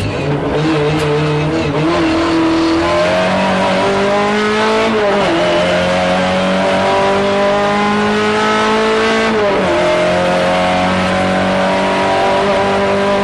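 A rally car engine roars loudly, rising in pitch as it accelerates and dropping at each gear change.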